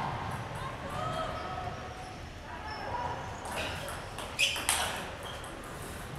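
A table tennis ball clicks sharply off paddles and the table in an echoing hall.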